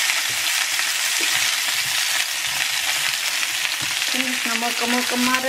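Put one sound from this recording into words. Potatoes sizzle in hot oil in a frying pan.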